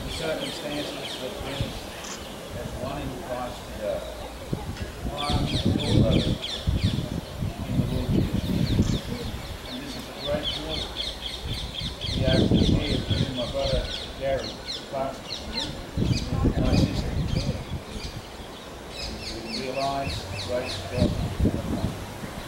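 An elderly man speaks calmly and softly nearby.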